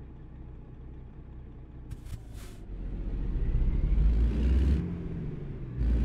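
A truck's diesel engine idles with a low rumble and revs up as the truck moves off.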